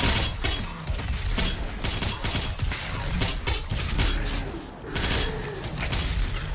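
Gunshots and blasts boom rapidly from a game.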